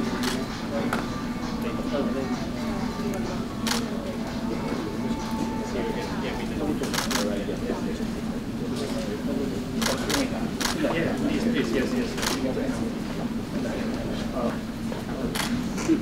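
A man speaks in a friendly tone nearby.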